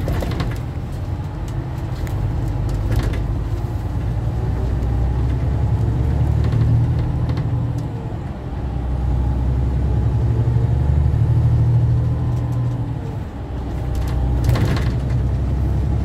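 A bus engine hums low and steady as the bus drives along.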